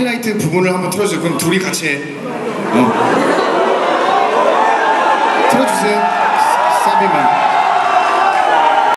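Young men sing and shout into microphones through loudspeakers.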